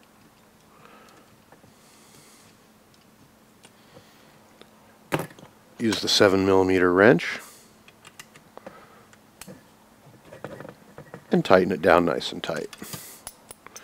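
Small screwdrivers scrape and creak as screws turn into plastic.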